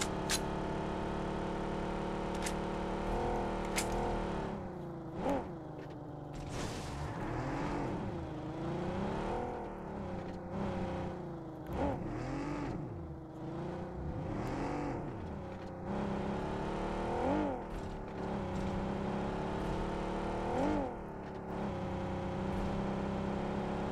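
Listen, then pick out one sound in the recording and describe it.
A car engine hums steadily and revs up and down as the car drives.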